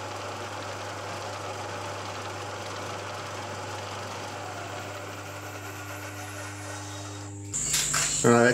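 A milling machine hums steadily as its cutter grinds through metal.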